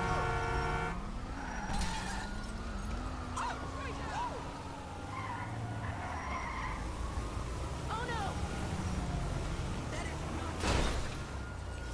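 A van engine roars as it drives along a road.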